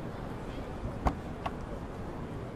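A train door clunks open with two sharp knocks.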